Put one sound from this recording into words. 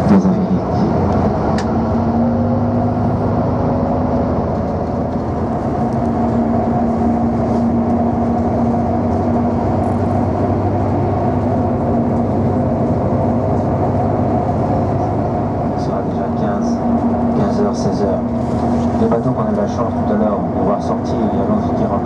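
An engine hums steadily from inside a moving vehicle.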